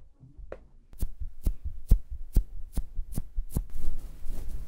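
Fingertips tap close up.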